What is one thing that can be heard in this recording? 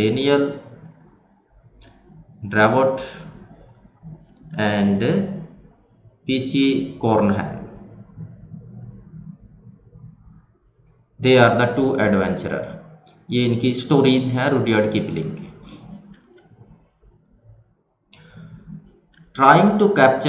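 A man lectures calmly into a close microphone, in short bursts with pauses.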